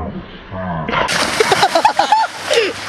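A body splashes into a pool.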